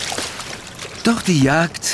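Water splashes as a bird takes off.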